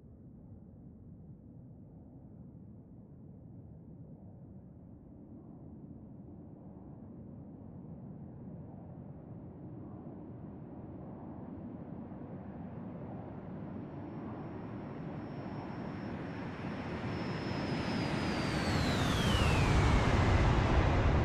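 A jet engine roars, growing steadily louder as it approaches, its whine dropping in pitch as it passes overhead.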